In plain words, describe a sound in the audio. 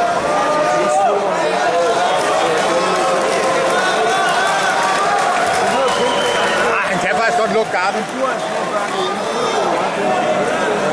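A crowd of spectators shouts and calls out in a large hall.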